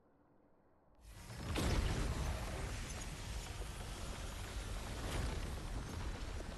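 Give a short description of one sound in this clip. A rushing, shimmering whoosh swells and holds.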